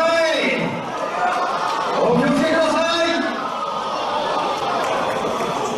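A large crowd chatters and shouts in a big echoing hall.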